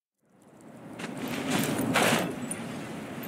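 Wings whoosh open with a sudden gust.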